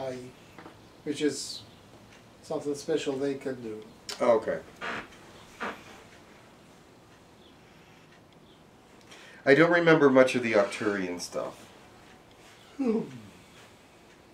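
A middle-aged man speaks calmly and softly nearby, with pauses.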